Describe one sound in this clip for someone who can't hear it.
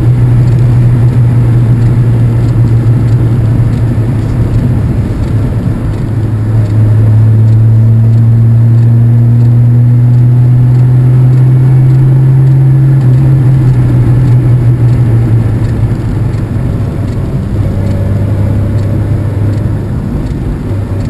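A motorcycle engine hums steadily, rising and falling with the throttle.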